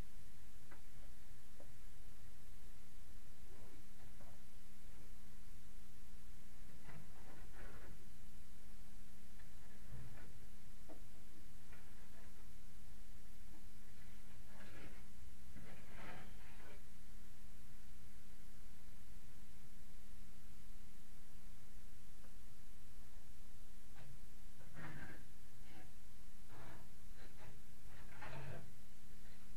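A person shuffles and knocks things about close by, in short bursts.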